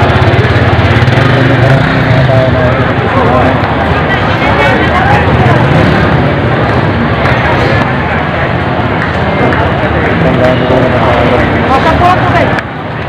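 A busy crowd of people chatters and calls out outdoors.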